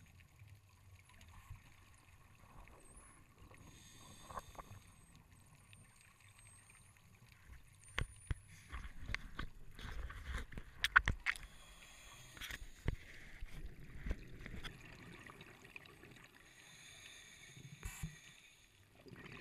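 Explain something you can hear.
Air bubbles from a diver's breathing gurgle and rumble close by underwater.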